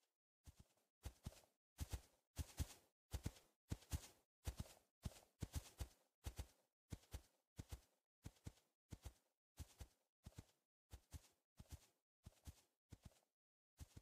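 Footsteps thud steadily at a walking pace.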